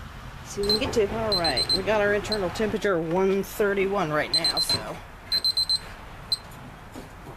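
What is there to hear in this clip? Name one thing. An electronic thermometer beeps in short, high bursts.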